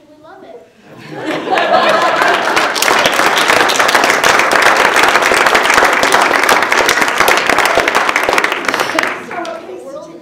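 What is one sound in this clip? A crowd applauds and cheers in a large room.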